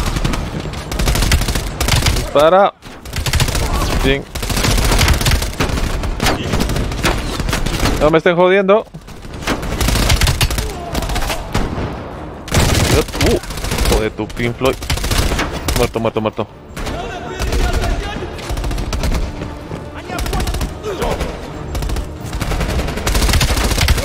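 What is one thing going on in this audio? Gunshots fire in rapid bursts in a large echoing hall.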